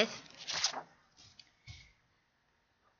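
A sheet of paper slides and rustles across a board.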